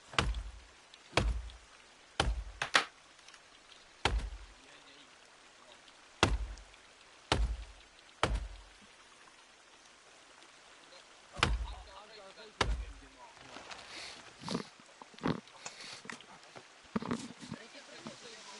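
An axe chops into wood with sharp, heavy thuds.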